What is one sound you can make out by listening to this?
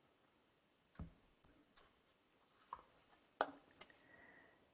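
A card is drawn from a deck and tapped down on a table.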